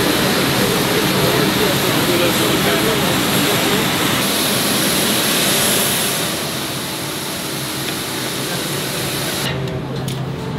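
A jet engine roars steadily nearby.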